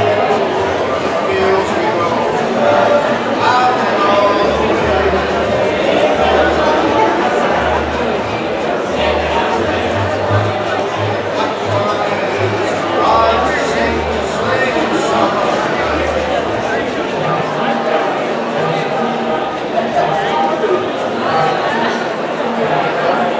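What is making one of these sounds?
A crowd chatters at tables.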